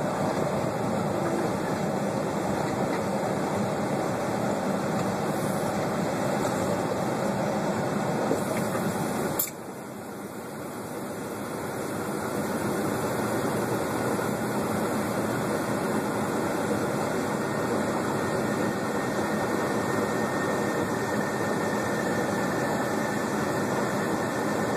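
A diesel semi truck's engine rumbles, heard from inside the cab.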